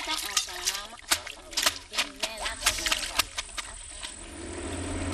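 Water splashes as clothes are washed in a river.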